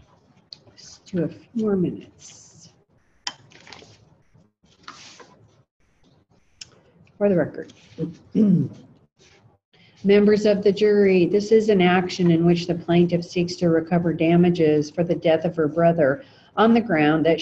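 A middle-aged woman speaks calmly and close by, in short bursts and then steadily.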